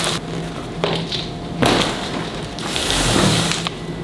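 A cardboard box is set down on a table with a thud.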